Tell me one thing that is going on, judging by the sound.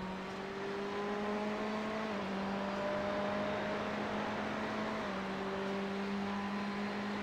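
A race car engine drones steadily, shifting pitch as the car changes gear.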